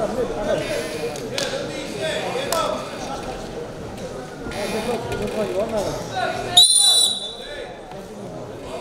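A crowd murmurs and calls out in a large hall.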